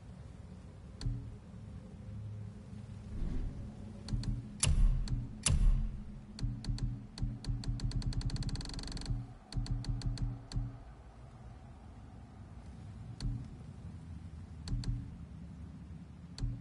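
Soft electronic clicks tick one by one, at times in a quick run.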